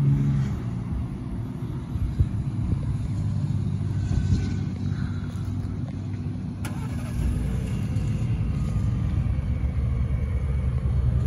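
A pickup truck engine idles with a low, steady rumble from the exhaust.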